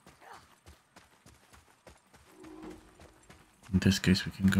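Heavy footsteps run quickly over sandy ground.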